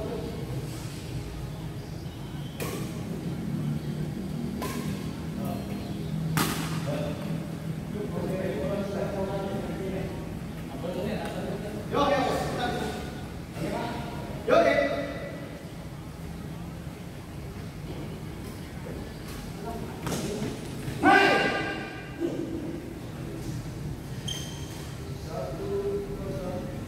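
Rackets strike a shuttlecock with sharp pops in a large echoing hall.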